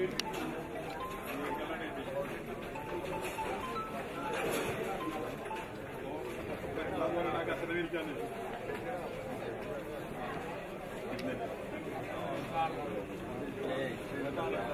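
A crowd of men chat and murmur nearby outdoors.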